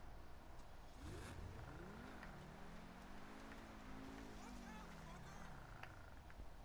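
A sports car engine revs up and down.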